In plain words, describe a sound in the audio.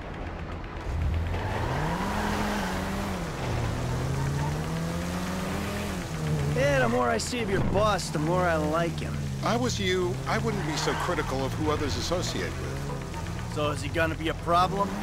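A car engine revs up and down as the car drives off.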